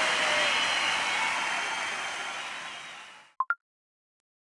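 A game victory jingle plays loudly and fades out.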